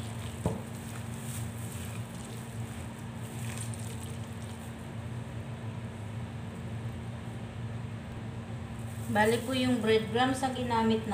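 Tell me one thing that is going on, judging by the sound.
A spoon stirs and squelches through a thick, moist mixture in a bowl.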